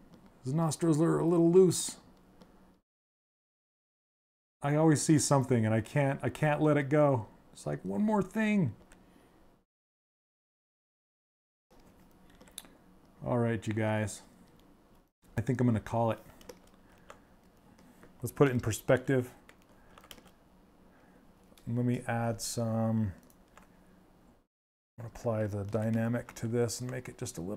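A man talks calmly into a microphone, in short bursts with pauses.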